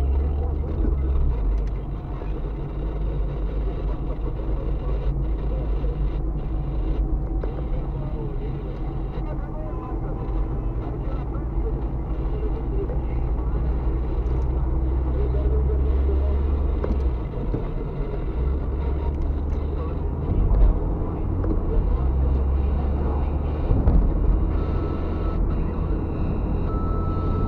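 A car drives along a highway, heard from inside with low engine and road rumble.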